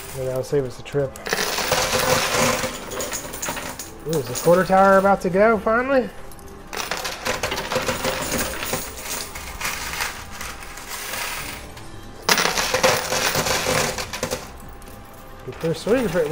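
Metal coins clink and clatter as they drop and slide against one another.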